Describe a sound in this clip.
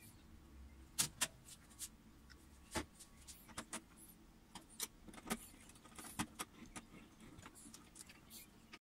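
Wires rustle and click as hands handle them.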